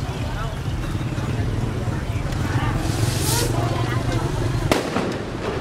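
A motorcycle engine idles close by with a steady low rumble.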